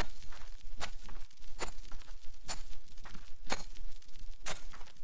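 A rake scrapes across loose soil in regular strokes.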